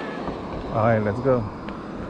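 Another car drives past nearby.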